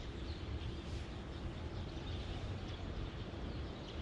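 A fishing rod swishes through the air as a line is cast.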